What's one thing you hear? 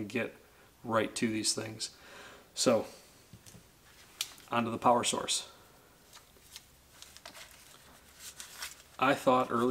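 A man talks calmly and close to a microphone, in short bursts with pauses.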